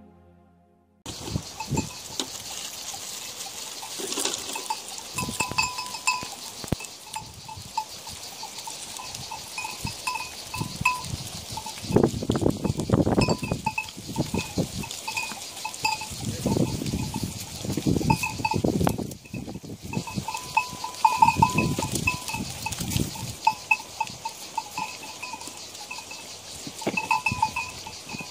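Small bells on goats clink and jingle close by.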